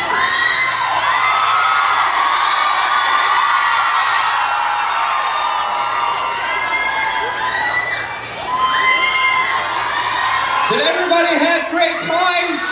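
A large crowd of young women screams and cheers loudly.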